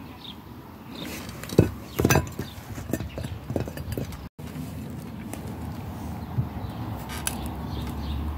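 Metal parts clink and knock as they are handled.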